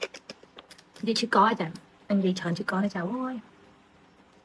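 A woman speaks with feeling close to a phone microphone.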